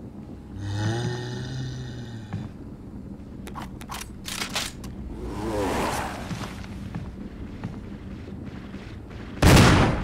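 Footsteps tread slowly across a floor.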